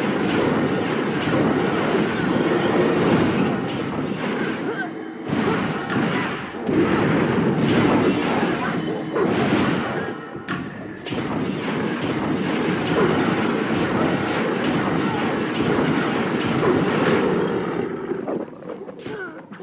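Magic blasts and weapon strikes crash and whoosh in quick bursts.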